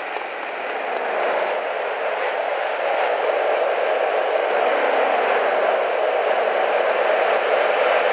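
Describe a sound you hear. A car engine idles and hums nearby.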